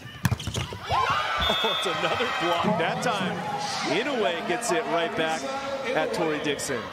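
Players on court shout excitedly.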